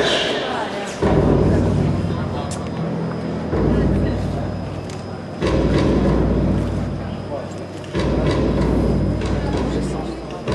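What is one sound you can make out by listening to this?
Hand drums boom with deep, ringing beats in a large echoing hall.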